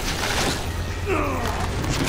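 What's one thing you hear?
A large creature growls and snarls close by.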